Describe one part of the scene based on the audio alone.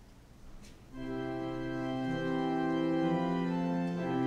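An organ plays sustained chords.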